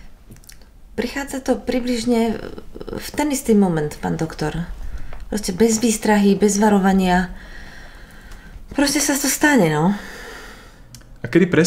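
A woman speaks close by in a tense, upset voice.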